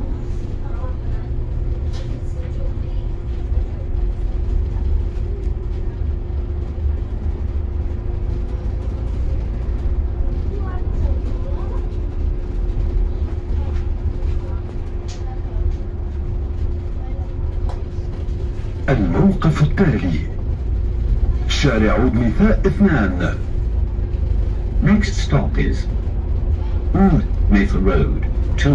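Tyres rumble low on the road.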